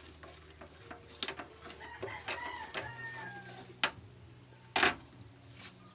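A metal spoon clinks against a small pot.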